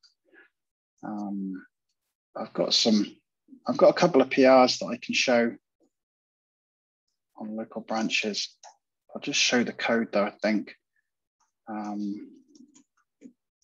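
A man speaks calmly and closely into a microphone.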